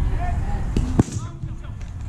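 A bat strikes a baseball with a sharp crack.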